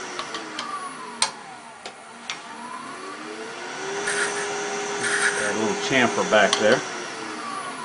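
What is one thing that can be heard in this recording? Metal tools clink and knock against a metal rest.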